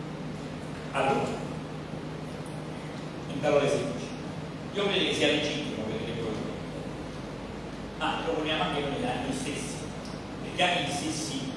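A man speaks in a large echoing hall, heard from across the room.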